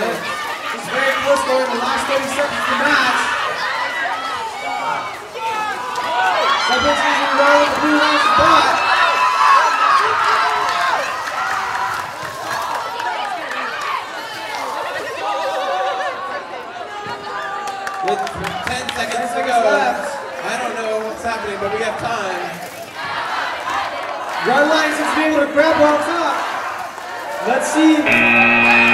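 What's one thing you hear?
A crowd of young people cheers and shouts in a large echoing hall.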